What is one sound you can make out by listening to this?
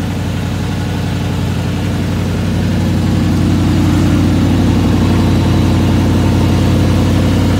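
A truck engine idles with a deep exhaust rumble, growing slightly louder.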